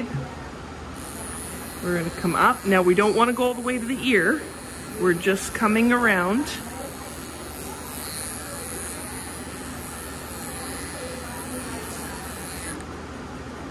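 Electric clippers buzz steadily close by.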